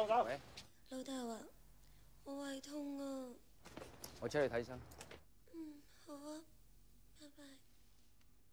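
A young woman speaks weakly on a phone.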